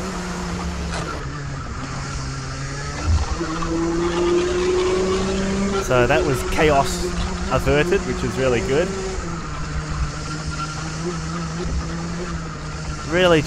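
A go-kart engine drones loudly up close, rising and falling in pitch as it revs.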